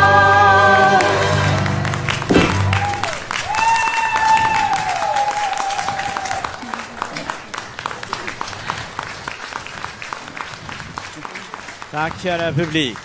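An audience applauds loudly in a hall, then the applause fades.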